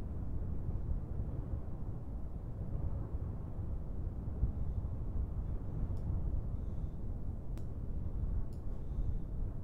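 Rocket engines roar with a steady, deep rumble.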